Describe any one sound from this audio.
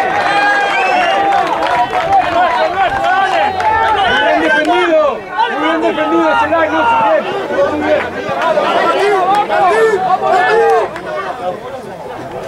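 A crowd of spectators shouts and cheers nearby outdoors.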